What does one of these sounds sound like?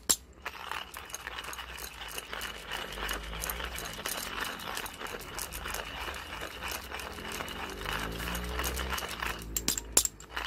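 A manual coffee grinder crunches through coffee beans as its crank is turned.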